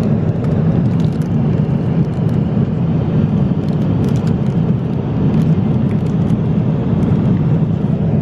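A plastic snack bag crinkles in a hand.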